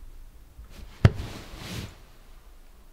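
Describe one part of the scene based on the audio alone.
Bedding rustles as a person moves under a duvet.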